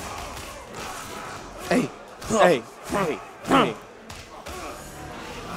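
Punches and kicks land with heavy thuds in quick succession.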